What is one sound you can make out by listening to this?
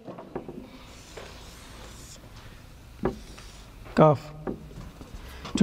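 A man speaks calmly, with short pauses.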